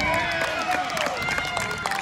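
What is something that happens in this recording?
A spectator claps hands close by.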